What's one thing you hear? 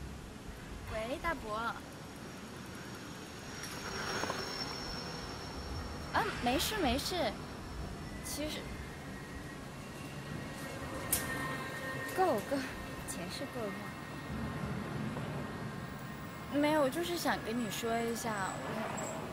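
A young woman talks calmly on a phone outdoors.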